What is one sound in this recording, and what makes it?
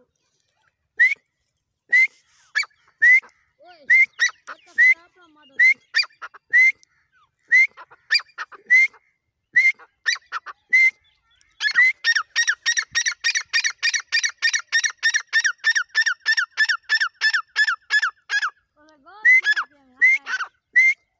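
A partridge calls with loud, sharp, repeated cries close by.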